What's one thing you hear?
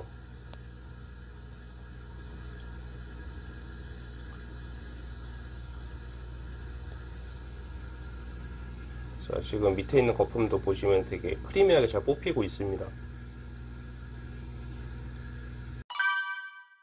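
A pump hums steadily.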